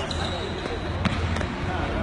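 A ball is kicked with a thud.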